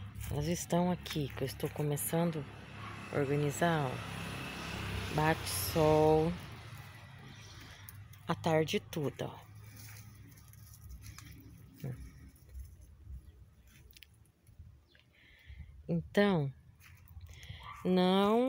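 A woman talks calmly, close by.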